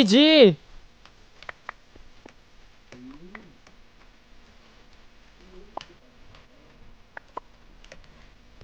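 Footsteps tap softly on stone blocks.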